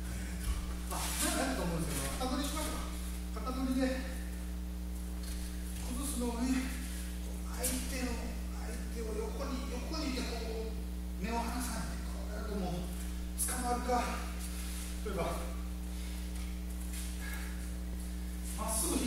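An elderly man speaks calmly, explaining.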